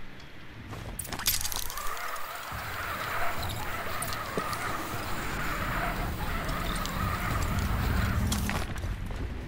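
A pulley whirs steadily along a rope as a woman slides down it.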